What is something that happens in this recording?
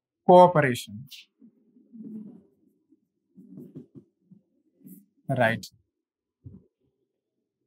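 A man lectures through a microphone, speaking with emphasis.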